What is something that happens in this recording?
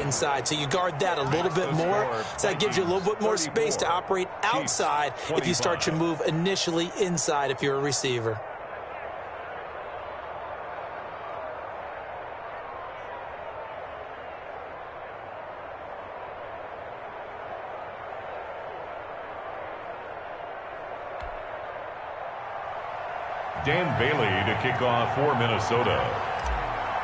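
A large stadium crowd roars steadily.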